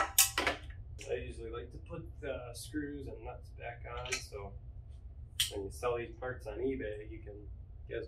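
A young man talks calmly to a microphone nearby.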